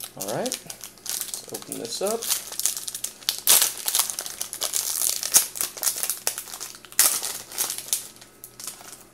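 Plastic foil crinkles and tears as a pack is ripped open.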